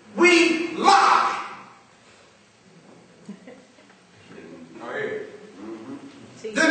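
A man preaches with animation into a microphone, his voice echoing in a hall.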